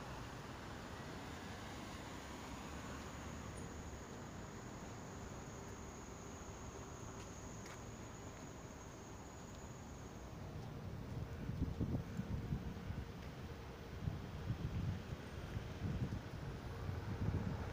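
Traffic hums steadily on a nearby road, outdoors.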